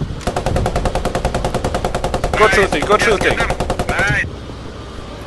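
A machine gun fires rapidly in a long burst.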